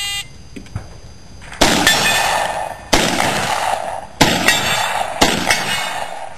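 A pistol fires quick shots outdoors.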